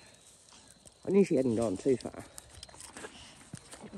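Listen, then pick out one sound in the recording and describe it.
A dog runs through dry grass close by.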